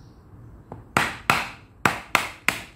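A hammer strikes a chisel into wood with sharp, ringing knocks.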